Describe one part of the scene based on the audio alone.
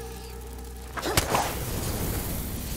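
Fire bursts into flame with a loud whoosh.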